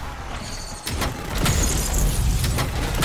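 A box creaks open with a shimmering chime.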